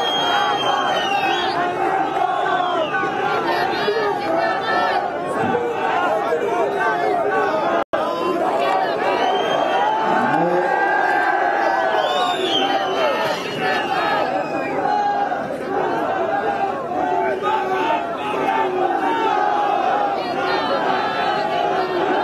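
Whistles shrill from a large crowd.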